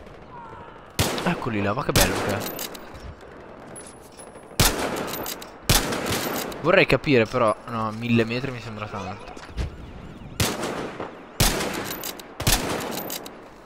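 Rifle shots crack sharply.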